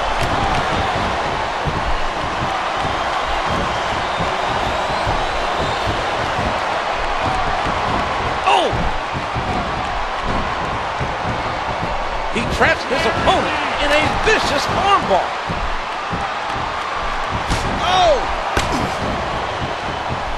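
Blows land with dull thuds as wrestlers grapple.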